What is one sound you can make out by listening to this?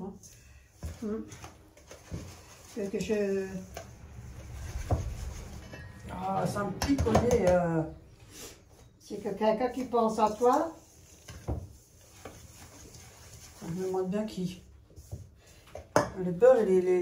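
A whisk or spoon scrapes and clinks against a metal bowl.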